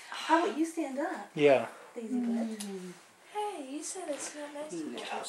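An older woman talks softly and sweetly close by, in a high, cooing voice.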